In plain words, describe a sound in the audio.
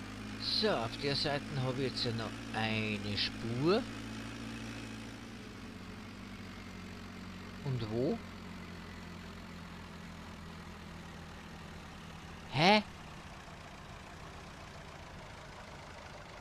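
A tractor engine hums steadily.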